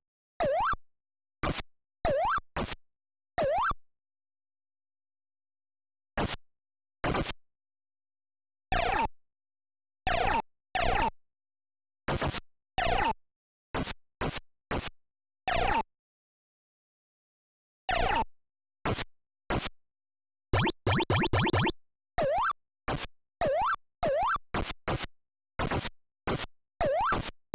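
Short electronic blips and beeps chirp in quick bursts.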